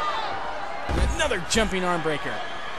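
A body slams down hard onto a wrestling mat with a heavy thud.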